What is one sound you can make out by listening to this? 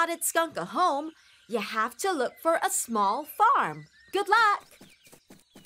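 A young boy speaks with animation.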